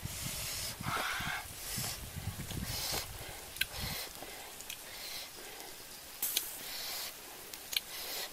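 Fingers pick and tear at cooked food.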